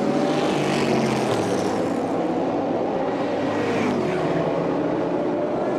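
A racing car engine roars as the car approaches.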